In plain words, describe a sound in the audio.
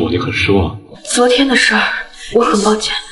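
A young woman speaks softly and apologetically, close by.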